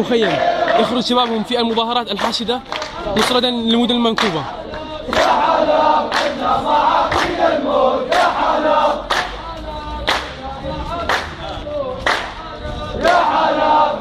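A crowd of men chants loudly in unison outdoors.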